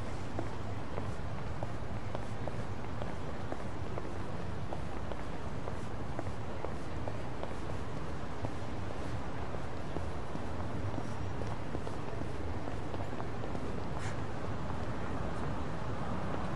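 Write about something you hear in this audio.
Footsteps tap at a steady walking pace on pavement.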